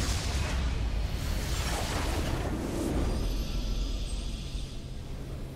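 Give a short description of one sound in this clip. Video game spell effects burst and crackle.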